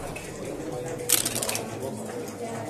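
Dice rattle in a cup and tumble onto a board.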